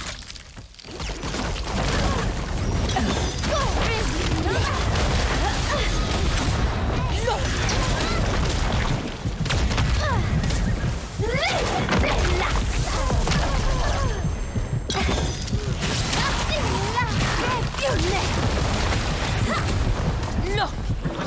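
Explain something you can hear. Magic spells crackle and whoosh in quick bursts.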